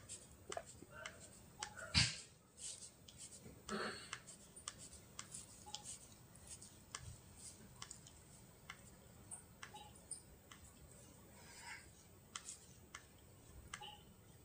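A fingertip taps and swipes on a phone's touchscreen.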